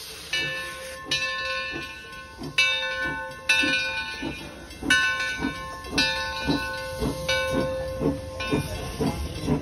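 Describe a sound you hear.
A locomotive bell rings repeatedly.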